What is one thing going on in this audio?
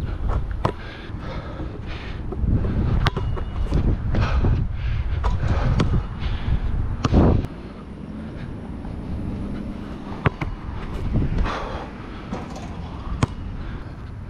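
A basketball bounces sharply on a hard court.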